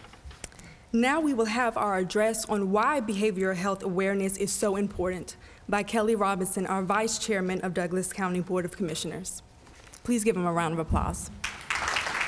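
A young woman speaks calmly into a microphone in a large room.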